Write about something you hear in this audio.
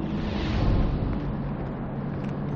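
Water splashes as someone wades through a stream.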